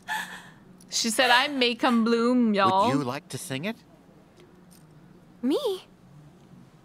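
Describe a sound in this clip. A young woman squeals and exclaims excitedly close to a microphone.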